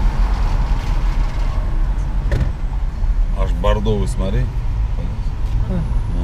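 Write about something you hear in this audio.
A truck roars past close by.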